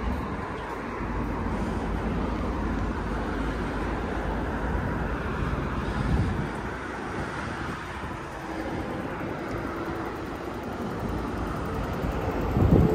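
Road traffic hums steadily nearby.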